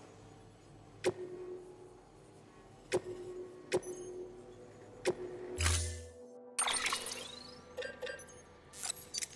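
Video game menu sounds click and chime as options are selected.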